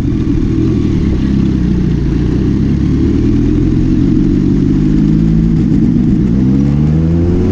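A motorcycle engine revs up, rising in pitch as it pulls away.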